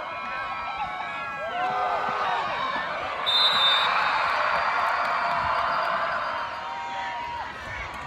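A crowd in outdoor stands cheers and shouts.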